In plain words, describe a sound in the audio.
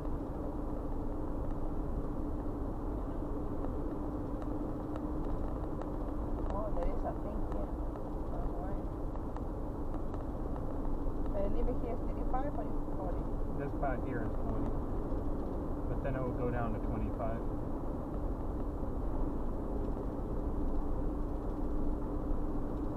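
Tyres and engine rumble steadily from inside a moving car.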